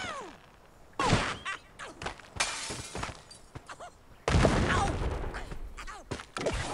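Wooden and stone blocks crash and clatter.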